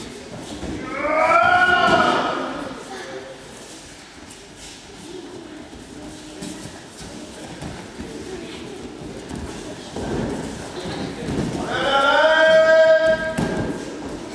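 Children shout loudly in an echoing hall.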